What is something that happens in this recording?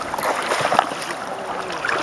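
Boots splash through shallow water.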